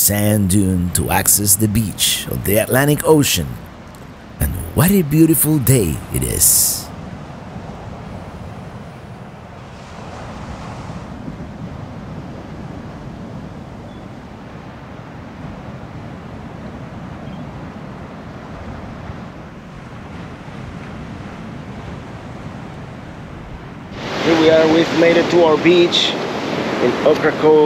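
Waves break and wash steadily onto a beach.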